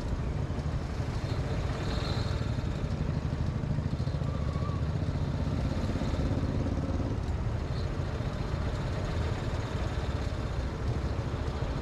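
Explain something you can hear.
A motorcycle engine idles close by with a low rumble.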